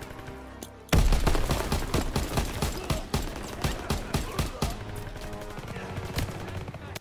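A rifle fires a quick series of loud shots.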